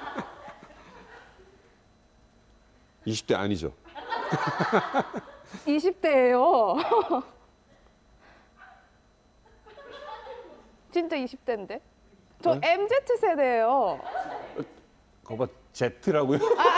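A woman speaks playfully in a high voice.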